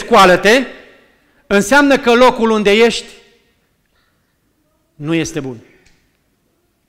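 A middle-aged man preaches forcefully through a microphone in a room with a slight echo, with pauses between his phrases.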